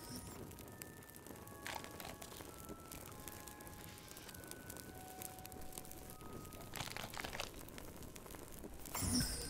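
A fire crackles and pops in a fireplace.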